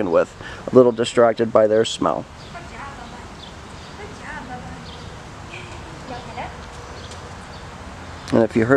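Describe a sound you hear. A woman gives short, animated commands outdoors.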